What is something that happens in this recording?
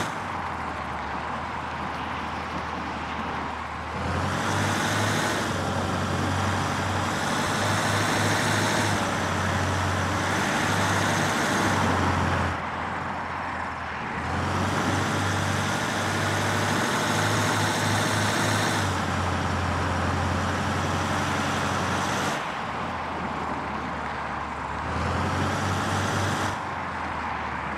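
An armoured vehicle's engine rumbles steadily and rises and falls as it drives.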